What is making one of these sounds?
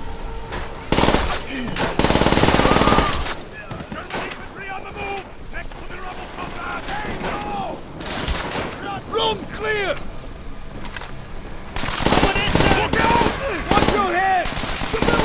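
A submachine gun fires rapid bursts at close range.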